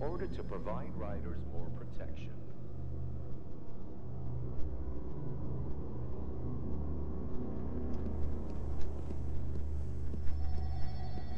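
Soft footsteps shuffle on a hard floor.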